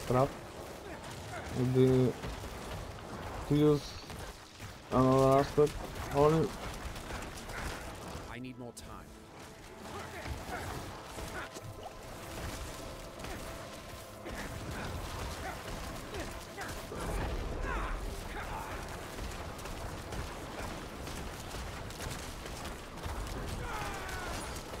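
Fantasy combat effects whoosh and crackle steadily in the background.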